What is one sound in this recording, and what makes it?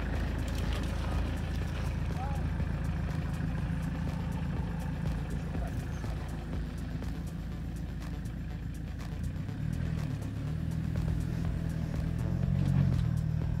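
An engine rumbles and revs as a four-wheel-drive vehicle climbs a rough dirt track.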